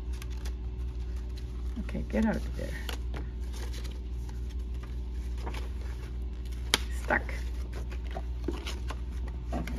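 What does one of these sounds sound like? Paper and plastic sleeves rustle and crinkle as they are handled.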